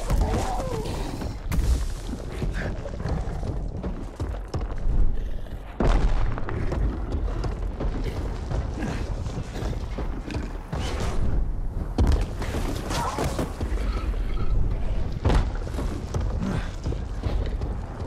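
A huge beast stomps heavily across stone ground.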